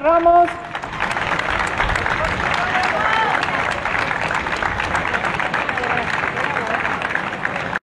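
A crowd claps rhythmically outdoors.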